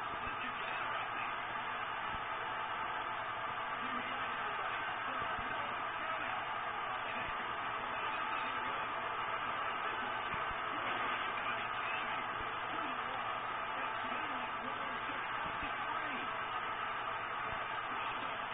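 Bodies thud heavily onto a wrestling ring.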